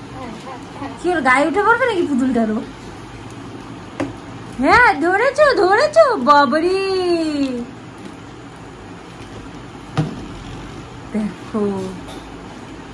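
A young woman speaks to a baby in a high, playful sing-song voice close by.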